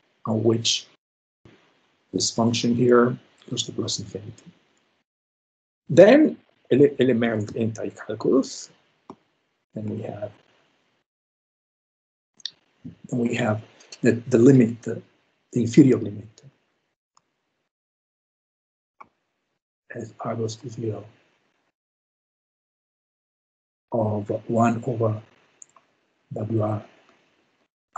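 A man speaks calmly through an online call, pausing between phrases.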